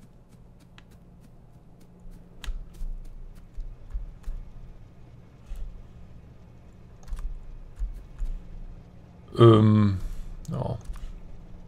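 Soft game interface clicks sound now and then.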